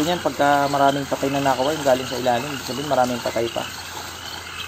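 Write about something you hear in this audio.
A man talks loudly with animation nearby.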